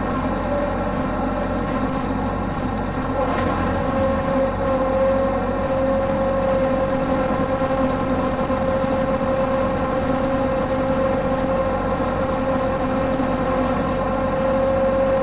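A tractor rattles and bumps over rough ground.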